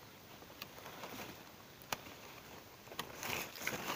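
Pruning shears snip with a sharp click.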